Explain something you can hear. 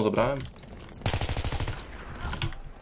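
An assault rifle fires a rapid automatic burst.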